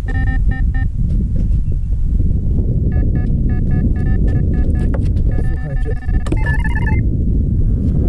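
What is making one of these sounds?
A fishing bite alarm beeps rapidly in bursts.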